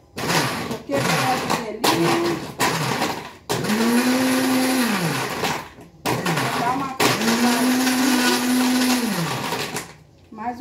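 A blender whirs loudly in short bursts, its motor spinning up and winding down.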